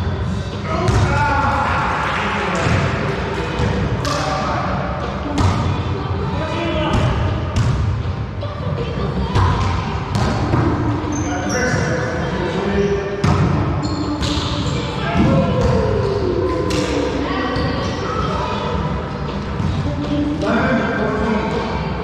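A volleyball is hit with sharp slaps in a large echoing room.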